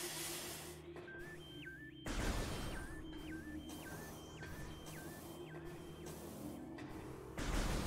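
An electronic beep repeats steadily, like a countdown.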